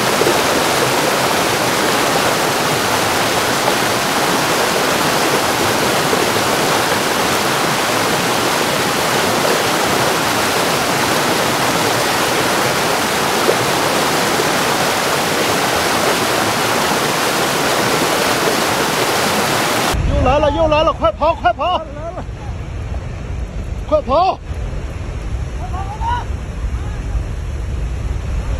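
A torrent of mud and rocks roars and rumbles steadily as it rushes down a slope.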